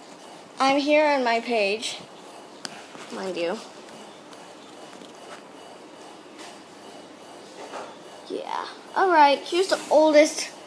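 A young girl talks close by in a high, playful voice.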